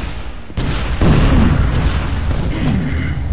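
An explosion roars loudly.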